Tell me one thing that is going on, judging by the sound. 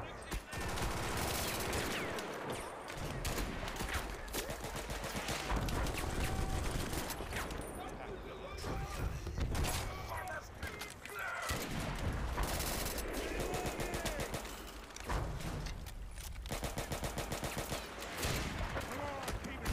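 Rapid gunfire crackles without pause.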